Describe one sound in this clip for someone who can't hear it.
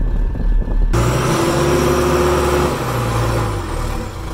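A loader's diesel engine rumbles.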